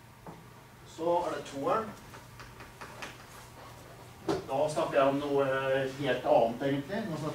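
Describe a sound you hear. A middle-aged man speaks calmly, as if lecturing, in a room with a slight echo.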